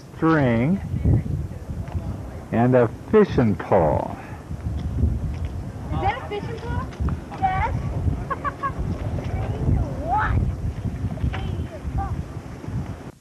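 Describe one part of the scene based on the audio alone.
A young boy talks excitedly nearby.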